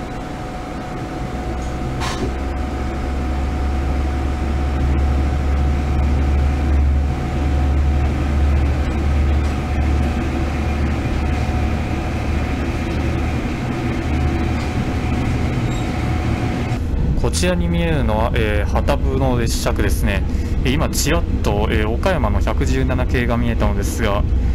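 A train rumbles steadily as it pulls away and gathers speed.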